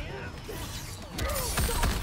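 A blast of fire whooshes out.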